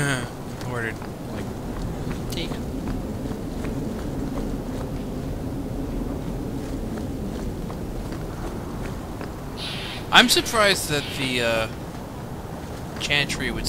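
Footsteps run quickly on stone paving.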